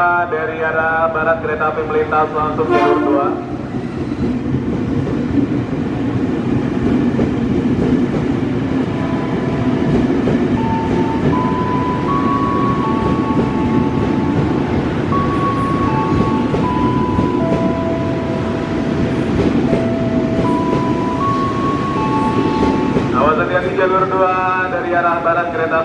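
A train rumbles past on the tracks at close range.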